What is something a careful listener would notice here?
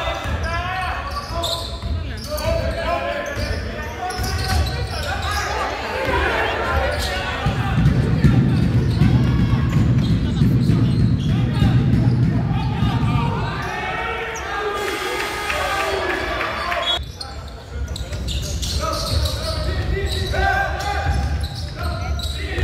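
Spectators shout and cheer loudly in an echoing gym.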